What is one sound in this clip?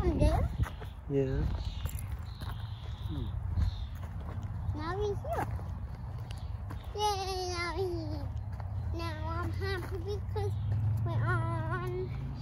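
A young girl talks and sings close by.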